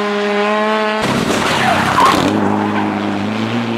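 Gravel sprays from a car's tyres as it slides through a corner.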